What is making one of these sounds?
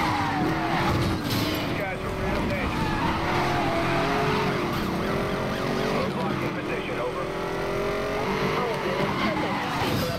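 Tyres screech as a car drifts around corners.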